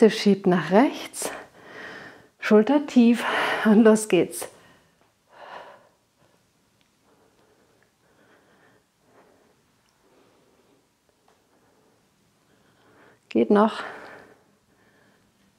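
A woman speaks clearly into a microphone, giving calm instructions.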